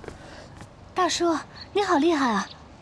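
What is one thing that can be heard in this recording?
A young woman speaks up close, excited and admiring.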